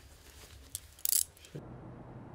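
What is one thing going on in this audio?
Metal handcuffs click shut.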